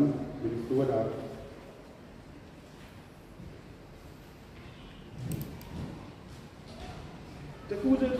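A man speaks slowly into a microphone in an echoing hall.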